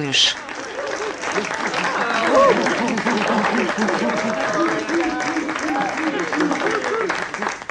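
A crowd of young people chatters and calls out all at once.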